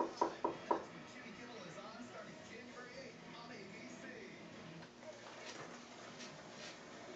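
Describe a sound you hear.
An older man talks softly close by.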